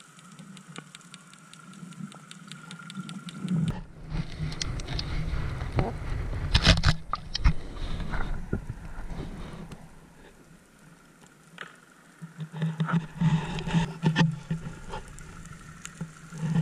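Water rushes and churns with a muffled underwater sound that rises and falls.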